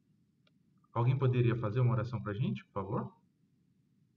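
A man speaks briefly and calmly over an online call.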